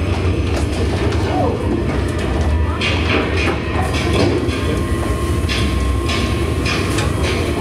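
Children talk excitedly together nearby.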